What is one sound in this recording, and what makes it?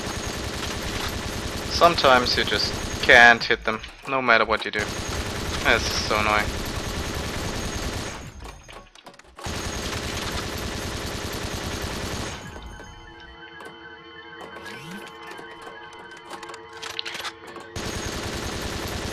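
A rapid-fire gun fires in long, rattling bursts.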